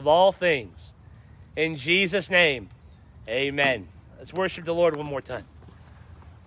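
A middle-aged man speaks loudly and with animation close by, outdoors.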